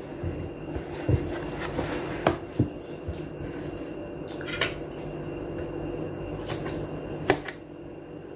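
A woman sings through a small phone speaker.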